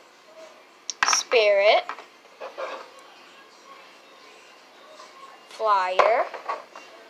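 A small plastic toy taps down on a hard surface.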